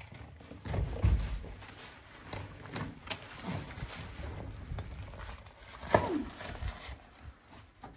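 Loose rubble and plaster scrape and clatter under a hand.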